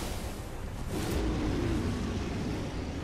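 A giant beast roars and growls.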